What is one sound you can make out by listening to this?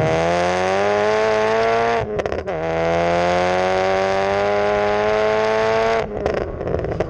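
A car exhaust roars loudly as the engine speeds up, with a short break at a gear change.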